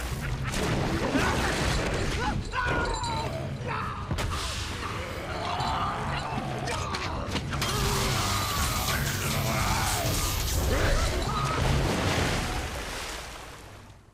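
Water splashes and churns loudly.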